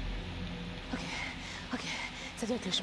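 A young woman speaks nervously and breathlessly, close by.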